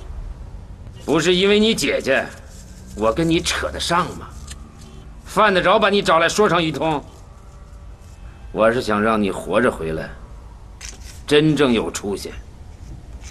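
A middle-aged man speaks calmly.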